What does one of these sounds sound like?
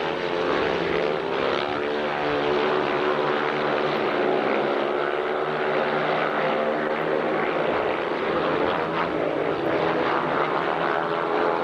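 A motorcycle engine roars loudly as the bike speeds and slides around a dirt track.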